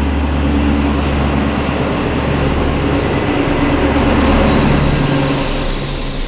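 A locomotive engine rumbles and idles close by, then fades as it pulls away.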